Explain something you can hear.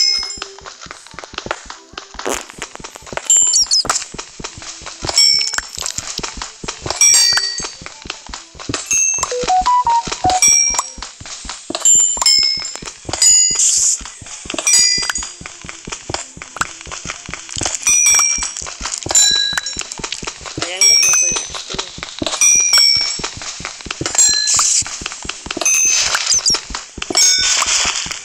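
A pickaxe chips rapidly at stone blocks in a game.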